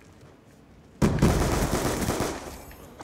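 A pistol fires several loud shots in quick succession.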